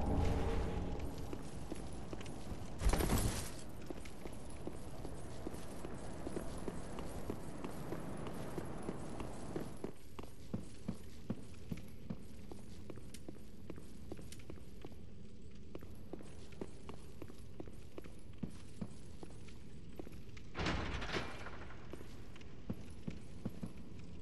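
Armoured footsteps run across stone.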